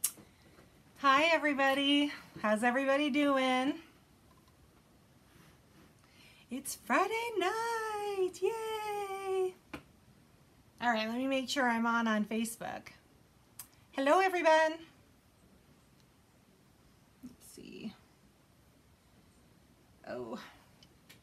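A middle-aged woman talks with animation close to a microphone.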